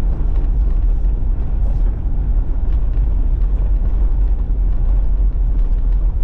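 A car engine rumbles steadily inside the car.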